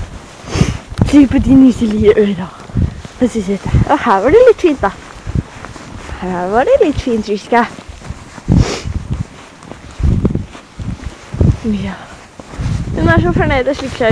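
A horse's hooves thud and crunch through deep snow.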